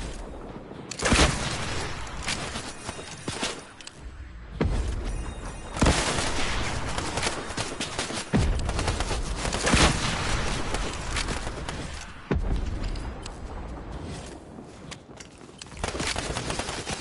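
A rocket launcher fires with a whoosh.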